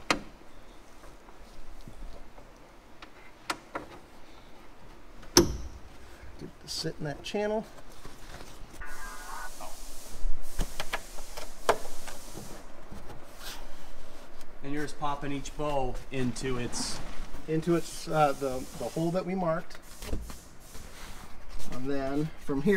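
Fabric rustles and crinkles as it is pulled.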